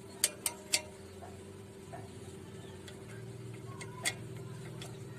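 Metal parts of a sewing machine click and tap.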